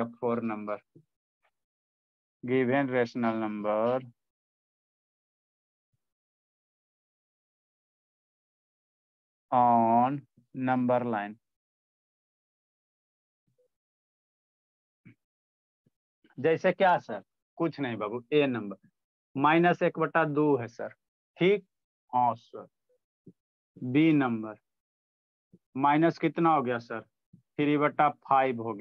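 A young man speaks calmly and clearly into a clip-on microphone, explaining in pauses.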